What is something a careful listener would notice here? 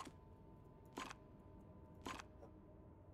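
A mechanical tile clicks sharply as it turns into place.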